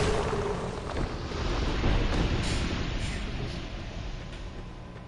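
Footsteps run over rough ground.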